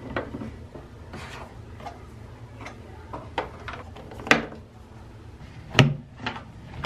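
Plastic jars and bottles clink and knock on a shelf.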